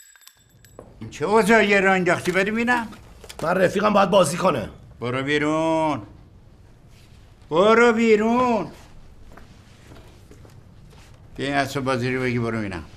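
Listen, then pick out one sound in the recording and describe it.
An elderly man speaks with animation nearby.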